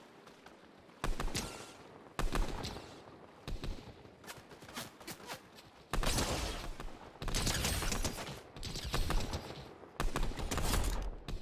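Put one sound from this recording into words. Rifle shots fire in quick bursts, close by.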